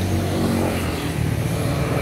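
A motorbike passes nearby.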